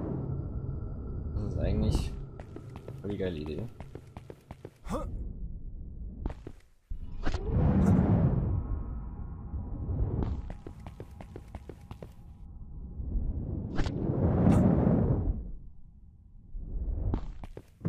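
Footsteps tread over rough ground.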